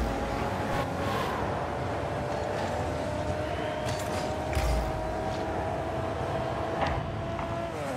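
A game car's engine hums steadily with a rising whine.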